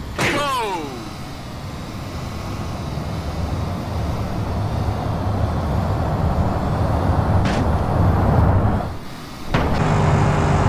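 A heavy truck engine rumbles and labours.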